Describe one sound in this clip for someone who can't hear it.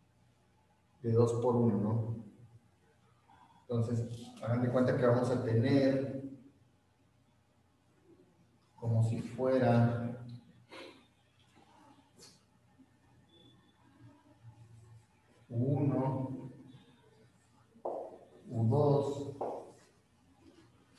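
A young man speaks calmly in short bursts.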